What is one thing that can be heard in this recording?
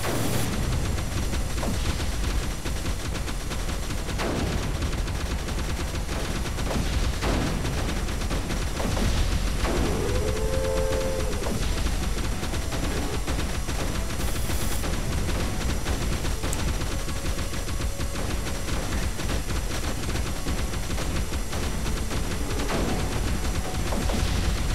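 Explosions and gunfire pop rapidly in a video game.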